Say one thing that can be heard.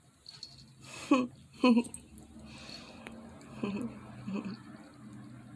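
A small dog gives short yelps and growls while playing.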